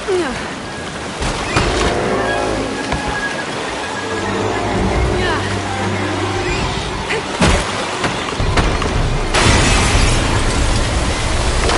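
A young woman gasps and grunts with effort while swimming.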